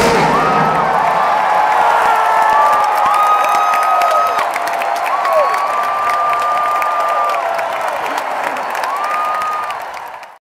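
A large crowd cheers and whistles outdoors.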